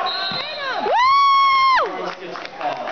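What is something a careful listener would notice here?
A referee blows a long, shrill whistle.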